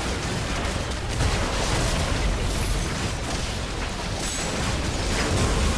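Heavy impacts thud as characters strike a large monster.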